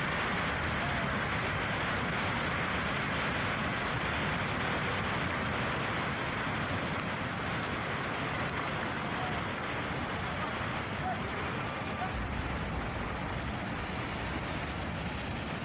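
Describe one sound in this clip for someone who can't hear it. Rocks and earth crash down a slope in a loud, steady rumbling roar.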